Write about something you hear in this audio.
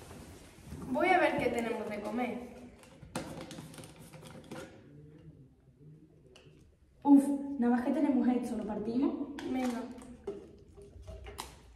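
A teenage girl speaks with animation close by.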